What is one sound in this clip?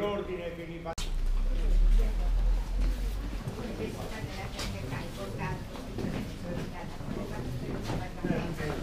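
Several people walk with shuffling footsteps indoors.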